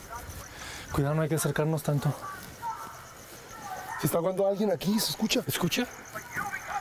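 A man speaks loudly and urgently close by.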